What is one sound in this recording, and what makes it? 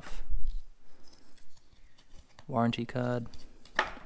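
A paper card rustles.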